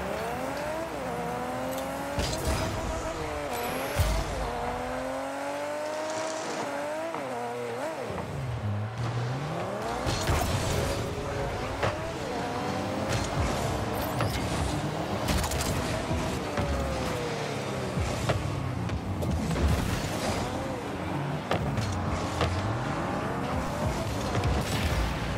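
A sports car engine revs up and down.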